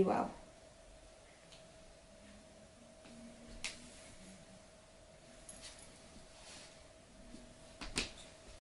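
Bare feet pad softly on a wooden floor.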